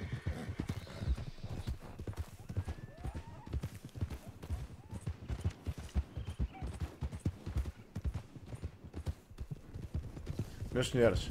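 Horse hooves thud rapidly on a dirt trail.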